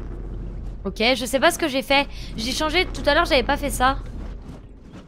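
A young woman speaks through a close microphone.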